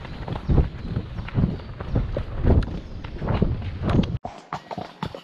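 A horse's hooves thud on a soft dirt track.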